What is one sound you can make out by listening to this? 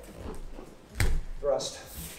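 A bare foot stamps once on a mat.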